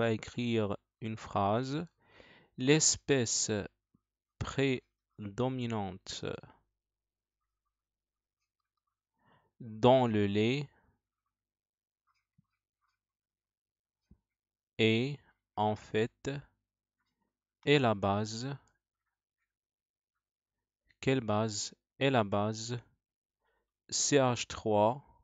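A man speaks calmly and explains through a headset microphone, pausing often.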